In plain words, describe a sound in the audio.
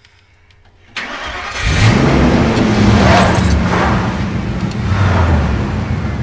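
A vehicle engine cranks and then roars to life.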